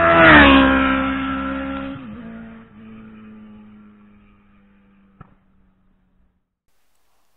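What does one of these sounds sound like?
A motorcycle engine roars past and fades into the distance.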